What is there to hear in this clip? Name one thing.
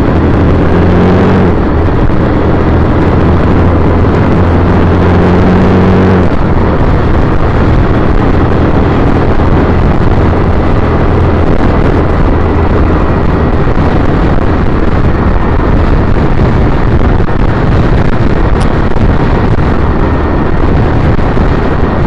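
Wind roars loudly past a moving vehicle.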